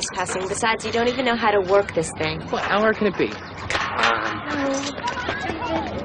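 A young woman speaks urgently and with emotion, close by.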